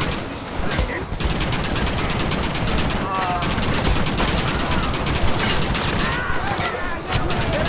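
A rifle fires in loud sharp shots.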